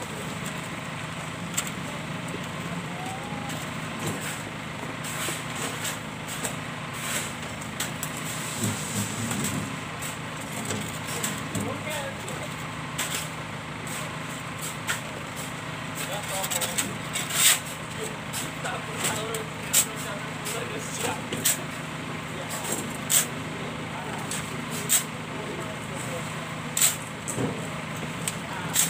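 Shovels scrape and dig into a sand pile.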